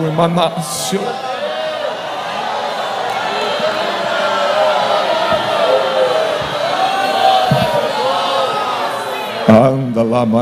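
A crowd of people pray and call out aloud together in the background.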